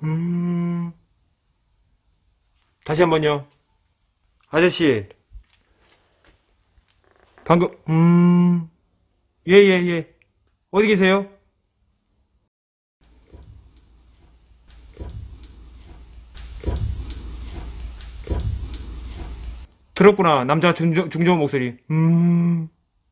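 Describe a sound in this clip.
A man speaks quietly into a microphone in short bursts, in a hushed, tense voice.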